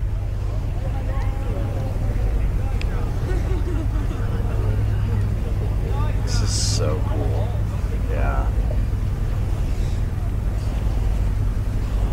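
An older man talks calmly and close into a microphone.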